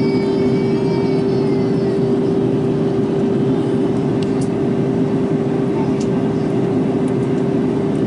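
Jet engines roar with a steady low drone inside an airliner cabin.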